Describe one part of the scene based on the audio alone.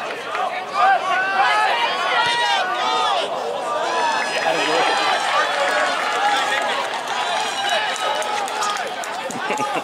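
A crowd of spectators cheers and shouts nearby outdoors.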